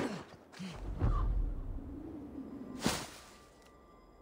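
A pile of dry leaves bursts apart with a loud rustling whoosh.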